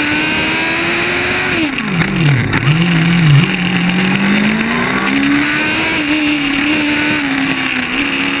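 A race car engine revs loudly up close, dropping in pitch while braking and rising again as it speeds up.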